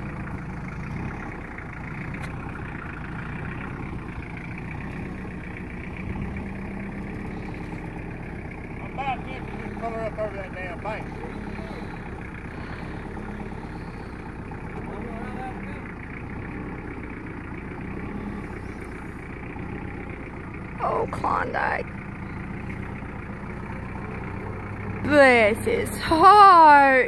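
A tractor engine idles steadily nearby.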